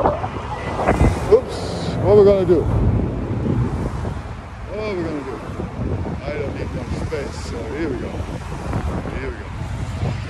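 Cars drive past on a city street.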